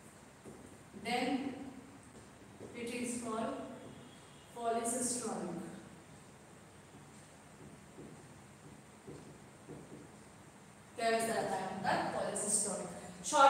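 A young woman speaks calmly, as if explaining, close by.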